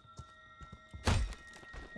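Glass shatters in a window.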